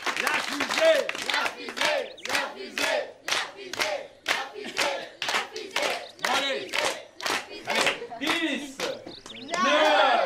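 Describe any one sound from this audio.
A crowd claps in a steady rhythm.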